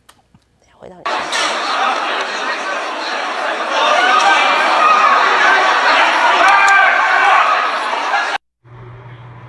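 A large crowd shouts and yells in an echoing hall.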